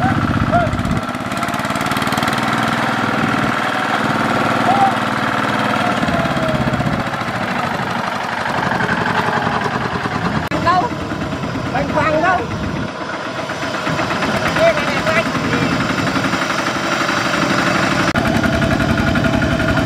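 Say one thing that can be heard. Tractor wheels churn and splash through mud and water.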